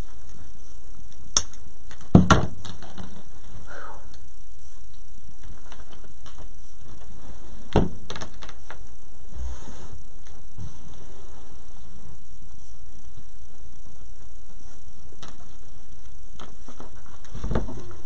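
Foam pieces rustle and bump against a table.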